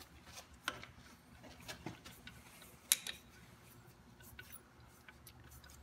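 A wrench clicks as it turns a bolt.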